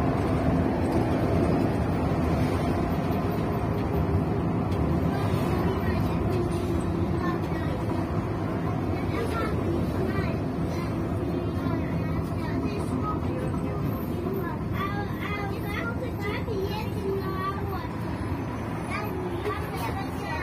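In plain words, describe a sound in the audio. The bus rattles and vibrates as it drives along the road.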